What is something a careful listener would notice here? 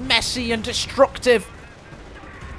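A man speaks animatedly into a close microphone.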